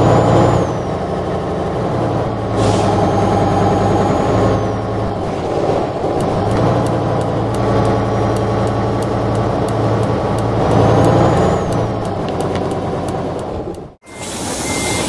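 A truck engine hums steadily and rises and falls as it drives.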